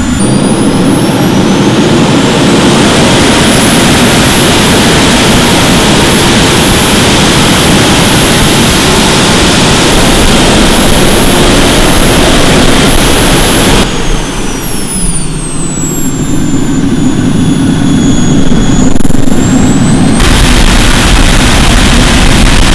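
A powerful blower roars loudly with a high whine.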